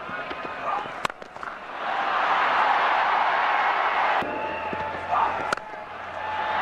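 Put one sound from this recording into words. A cricket bat strikes a ball with a sharp crack.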